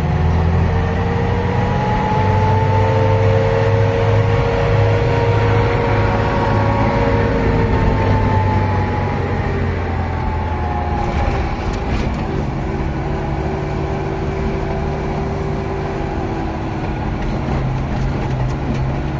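A vehicle's engine hums steadily from inside the cab.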